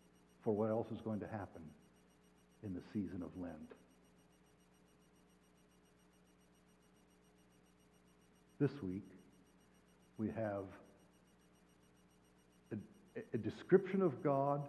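An elderly man speaks calmly through a microphone, pausing often.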